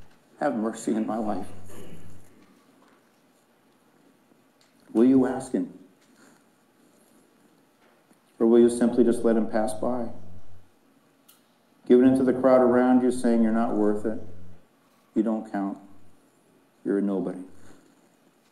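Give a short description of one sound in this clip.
A man speaks calmly into a microphone in a large room, with pauses between phrases.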